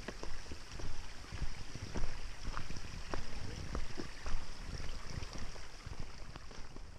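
Bike tyres roll and crunch over rocky dirt.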